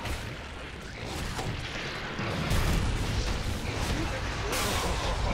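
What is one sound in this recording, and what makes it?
Game spells and attacks crash and boom in quick bursts.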